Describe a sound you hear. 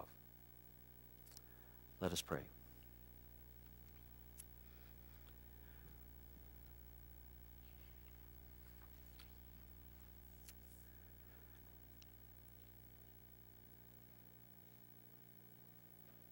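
A man speaks slowly into a microphone.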